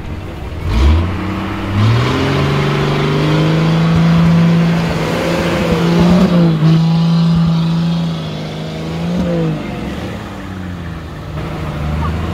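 Tyres spin and churn through wet mud.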